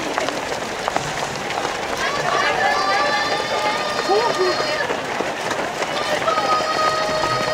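A crowd of spectators cheers and calls out along the road.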